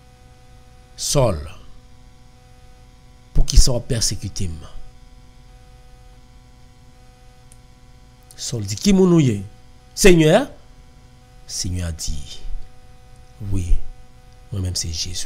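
A man prays aloud close to a microphone, speaking in short, fervent bursts with long pauses.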